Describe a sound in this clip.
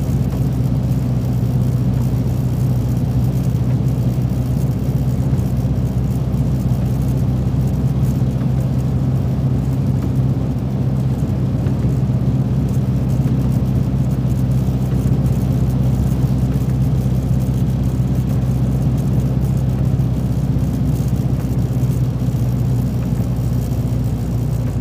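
A truck engine hums low and steady from inside the cab.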